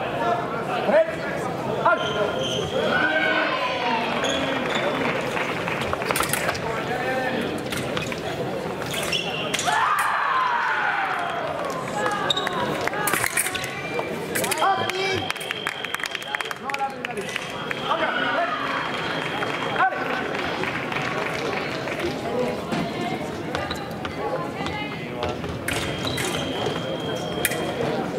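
Fencers' feet stamp and slide on a hard floor.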